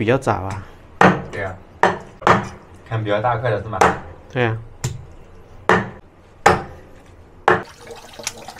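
A cleaver chops sharply on a wooden board.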